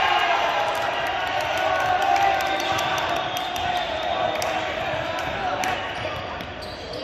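Young men shout and cheer in a large echoing gym.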